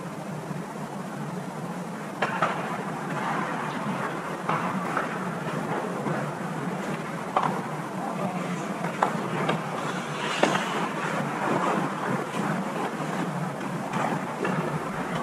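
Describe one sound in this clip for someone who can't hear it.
Ice hockey skates scrape and carve across the ice in a large echoing rink.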